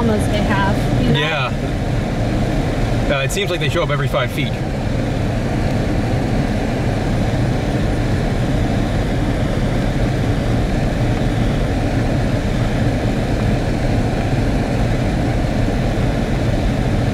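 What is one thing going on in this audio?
A car engine hums low and steady.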